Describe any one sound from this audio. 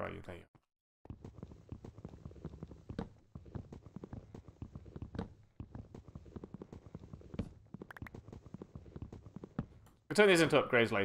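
An axe chops at wood with quick, repeated knocks.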